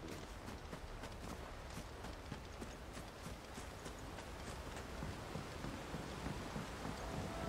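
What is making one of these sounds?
Footsteps crunch on grass and thud on wooden planks at a brisk pace.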